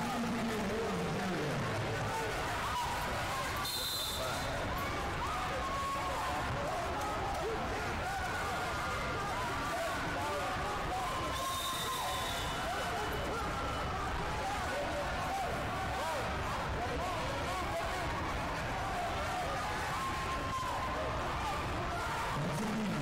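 Many voices chatter and shout in a large echoing hall.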